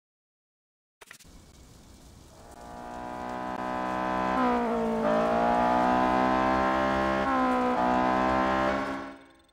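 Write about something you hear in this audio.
A sports car engine idles and then revs loudly.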